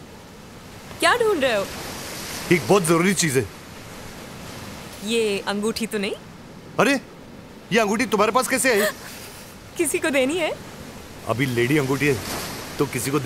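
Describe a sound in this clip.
A young woman speaks softly.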